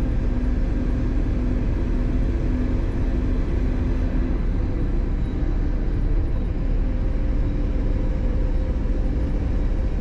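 A diesel coach engine drones, heard from inside the cab while cruising on a highway.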